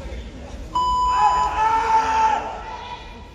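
A young man lets out a loud, sharp shout in a large echoing hall.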